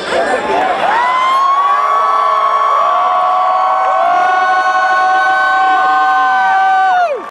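Loud electronic music with long, held, sliding tones plays through big loudspeakers outdoors.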